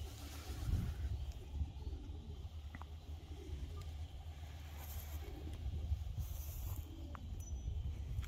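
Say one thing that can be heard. A flock of pigeons flaps its wings overhead.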